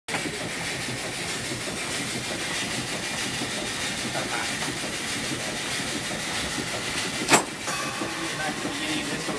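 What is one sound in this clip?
A mechanical band organ plays a lively tune with pipes and drums.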